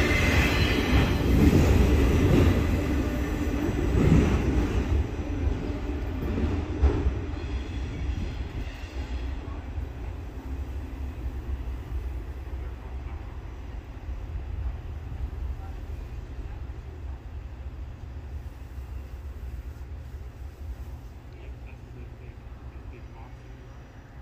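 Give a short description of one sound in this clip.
A freight train rumbles away along the tracks, its wheels clattering and slowly fading into the distance.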